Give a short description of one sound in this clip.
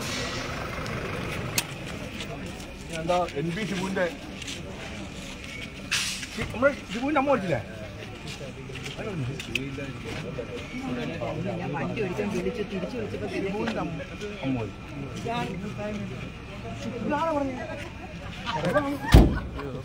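Several men talk nearby outdoors, with lively overlapping voices.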